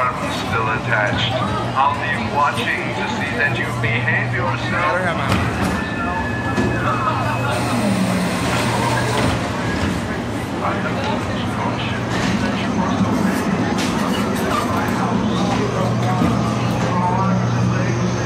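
Ride cars rumble and clatter along a track.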